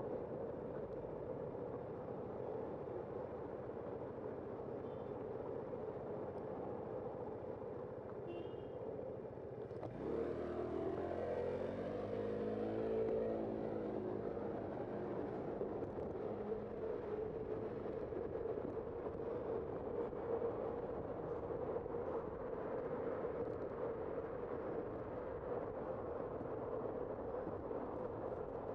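A scooter engine hums steadily, then rises in pitch as it speeds up.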